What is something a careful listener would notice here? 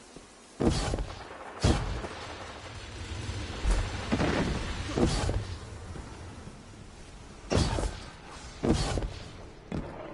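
Gunshots from a video game boom in short bursts.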